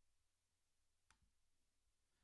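A computer mouse clicks once.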